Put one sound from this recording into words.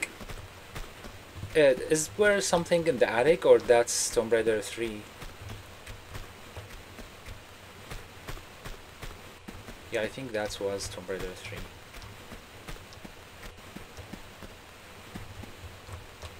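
Footsteps patter quickly on wooden boards.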